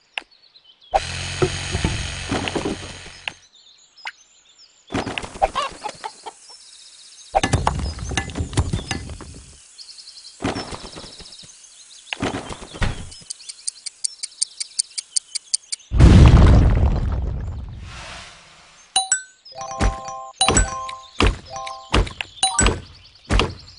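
Hammers knock on wood at a building site.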